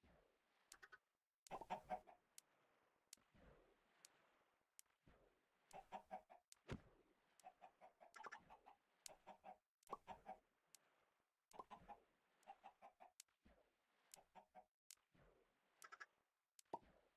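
Many chickens cluck and squawk in short, repeated bursts.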